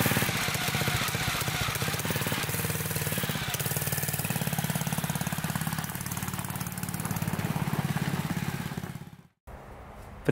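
A small engine runs and drives off, fading away.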